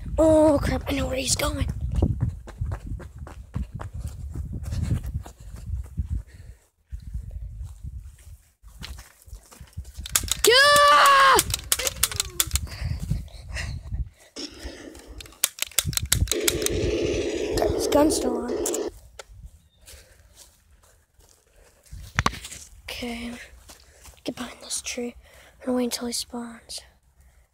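A toy cap gun clicks and snaps repeatedly close by.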